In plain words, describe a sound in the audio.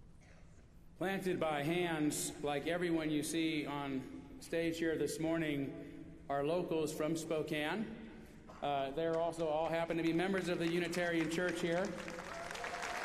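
A middle-aged man speaks calmly into a microphone in a large, echoing hall.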